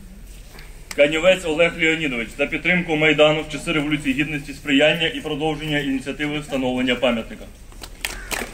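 A young man reads out aloud through a microphone and loudspeaker, outdoors.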